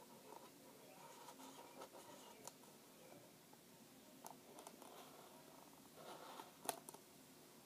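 A young girl speaks softly, close by.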